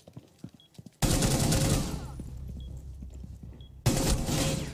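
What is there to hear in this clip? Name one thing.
Gunshots ring out loudly in short bursts.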